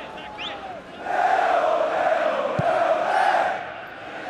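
A large stadium crowd roars loudly.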